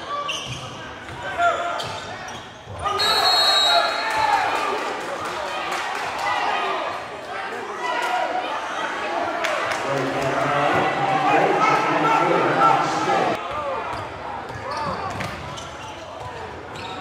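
A crowd of spectators chatters and cheers in an echoing gym.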